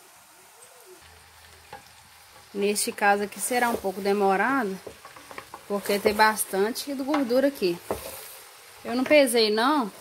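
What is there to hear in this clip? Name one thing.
A wooden paddle stirs and scrapes through chunks of fat in a metal pot.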